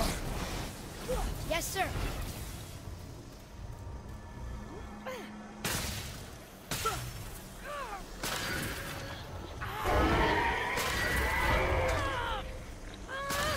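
A magical spirit crackles and shimmers with a bright whooshing.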